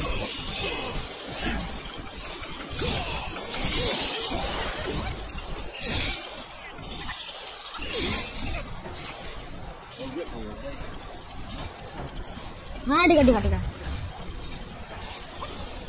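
Blades clash and whoosh in a game fight.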